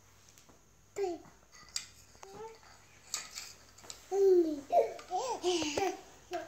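A baby babbles and coos nearby.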